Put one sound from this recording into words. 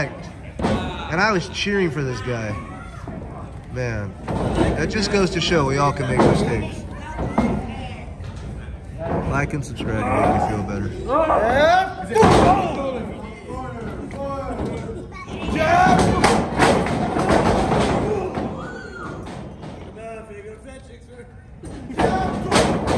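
Men shout excitedly nearby.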